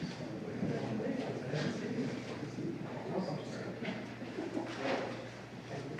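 Women chant together slowly in an echoing room.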